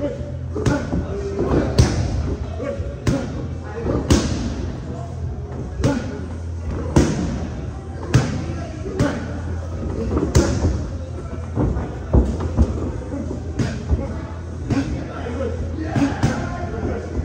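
Gloved punches and kicks smack sharply against padded mitts and shields in an echoing room.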